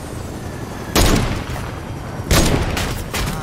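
A sniper rifle fires in a video game.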